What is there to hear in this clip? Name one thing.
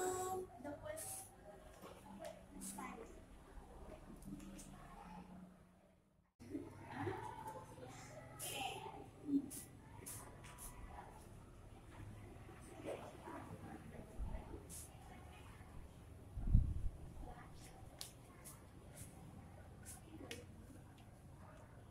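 Sheets of paper rustle and crinkle.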